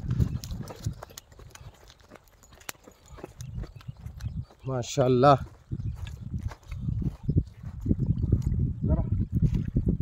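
Footsteps crunch on dry ground as a man runs.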